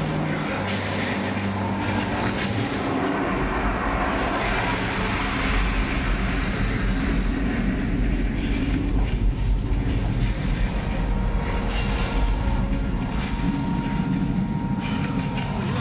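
An ice axe bites into ice.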